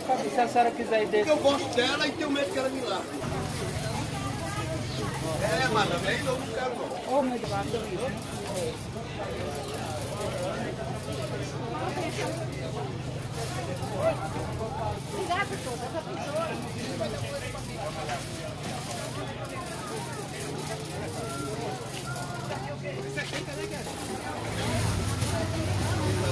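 A shopping cart's wheels rattle over pavement.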